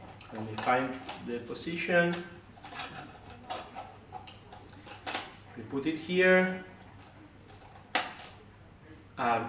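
A young man speaks calmly and clearly nearby.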